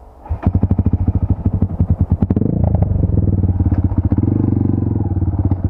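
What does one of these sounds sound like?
A motorcycle engine starts up and chugs with a rapid, steady beat, then revs up a little.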